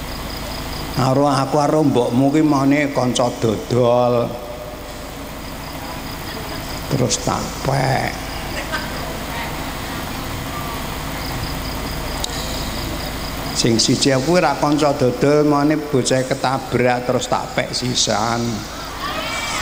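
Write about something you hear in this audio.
An elderly man speaks calmly into a microphone over a loudspeaker, with pauses.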